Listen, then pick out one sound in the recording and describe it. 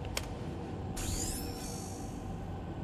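An electronic chime rings and quickly fades.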